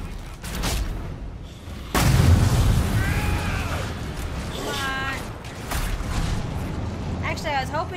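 Swords clash and magic blasts crackle in a fight.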